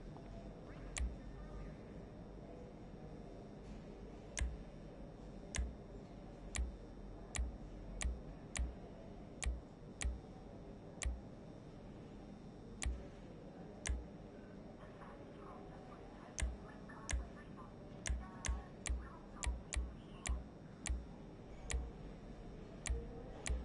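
Short sharp clicks sound one after another at uneven intervals.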